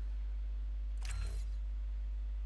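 A short electronic menu sound plays as an option is selected.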